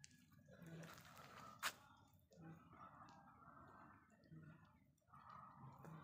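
A puppy suckles from its mother.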